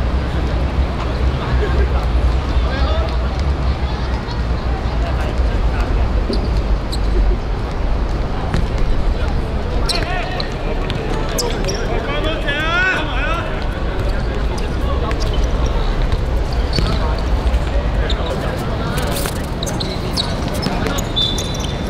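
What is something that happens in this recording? Young men call out to each other on an outdoor court.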